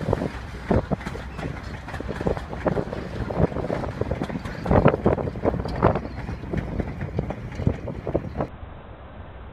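A passenger train rolls past close by, wheels clattering and clicking over rail joints.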